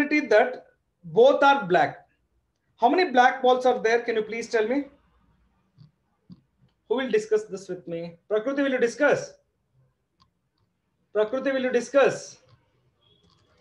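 A man speaks calmly and clearly, close to a microphone, in short bursts with pauses.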